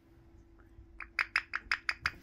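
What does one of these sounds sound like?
A parrot chirps in quick, rapid bursts.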